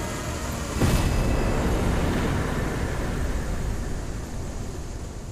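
A deep boom rumbles and slowly fades.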